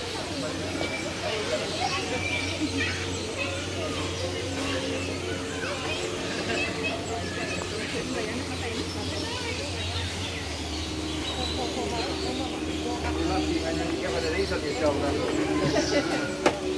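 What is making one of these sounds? Several men and women chat nearby outdoors.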